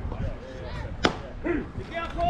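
A softball smacks into a catcher's glove with a sharp pop.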